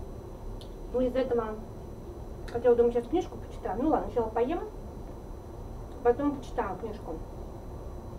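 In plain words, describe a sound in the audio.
A middle-aged woman speaks calmly, close by, in short bursts.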